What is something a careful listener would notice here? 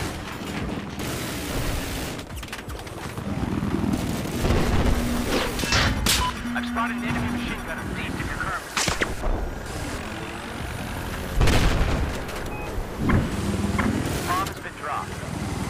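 A helicopter engine roars steadily.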